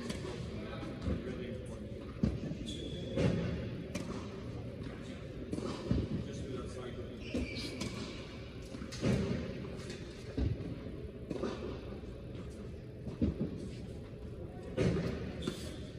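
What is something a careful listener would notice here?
Tennis balls are struck with rackets, echoing in a large indoor hall.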